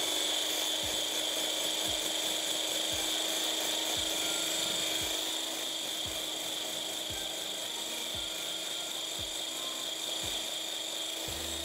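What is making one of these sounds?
A hand blender whirs steadily, blending liquid in a jug.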